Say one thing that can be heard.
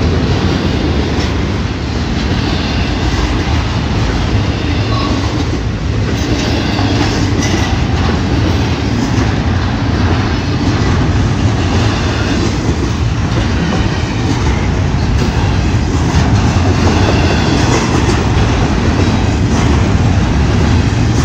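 A freight train rushes past close by with a loud, steady rumble.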